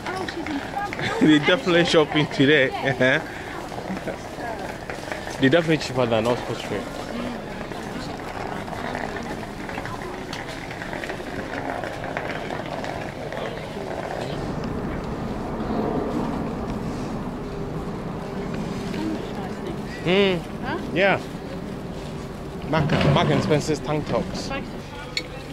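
Nearby voices of men and women talk loudly in bursts.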